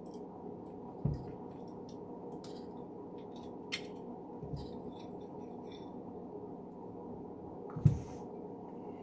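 Small metal knife parts click and tap as they are handled.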